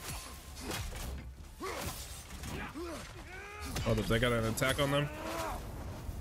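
Blades clash and strike in a fierce fight.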